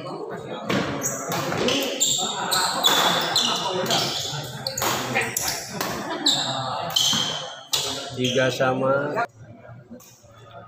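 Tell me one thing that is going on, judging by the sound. Men talk and call out in a large echoing hall.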